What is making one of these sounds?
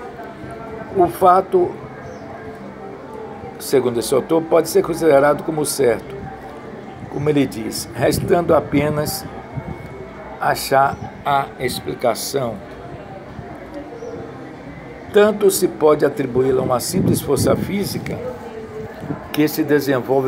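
An elderly man speaks calmly, close to a phone microphone.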